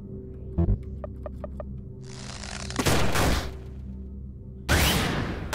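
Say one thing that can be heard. Game music plays with beeping blips.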